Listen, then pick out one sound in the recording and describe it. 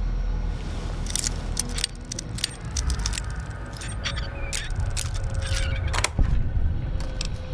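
Metal lock picks scrape and click inside a lock.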